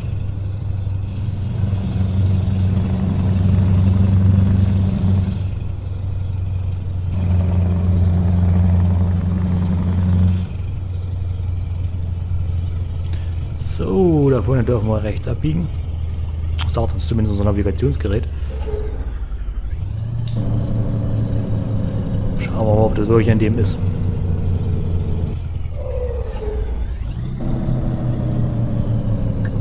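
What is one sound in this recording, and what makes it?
A truck engine drones steadily as the truck drives along.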